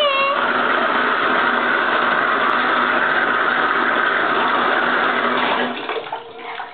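Water runs from a tap and splashes steadily, then stops.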